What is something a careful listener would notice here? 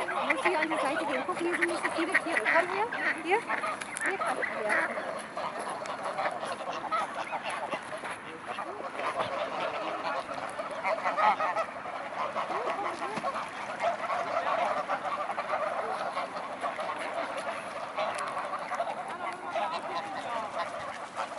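Geese honk and call nearby.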